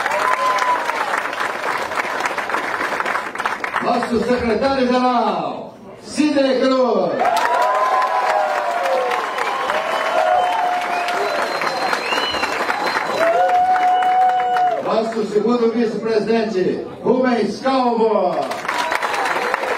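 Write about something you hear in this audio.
A crowd of men and women chants and sings loudly.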